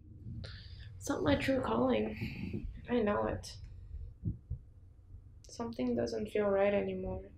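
A young woman speaks calmly and quietly nearby.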